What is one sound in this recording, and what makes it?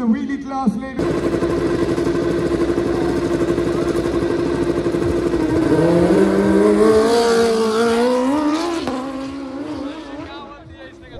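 Two motorcycles roar away and speed off.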